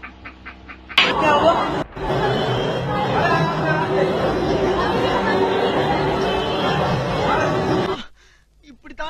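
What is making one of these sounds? A crowd murmurs and chatters at a lively gathering.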